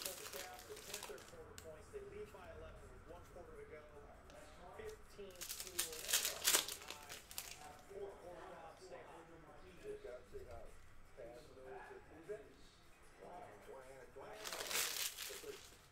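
Foil wrappers crinkle as packs are torn open.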